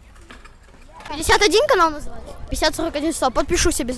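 A young boy speaks close into a microphone.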